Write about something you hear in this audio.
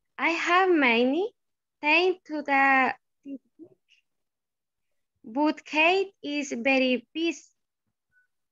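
A woman speaks clearly over an online call.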